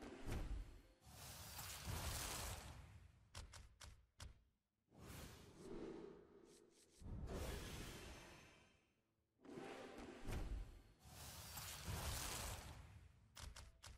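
A magical whoosh and shimmering burst sound out as a pack of cards bursts open.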